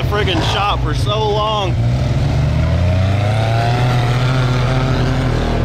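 An off-road vehicle's engine rumbles steadily close by.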